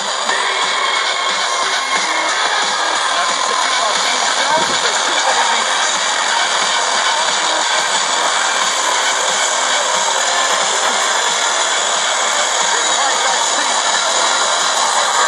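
A radio loudspeaker gives out steady static hiss.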